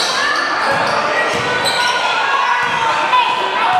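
A basketball thumps on a hardwood floor.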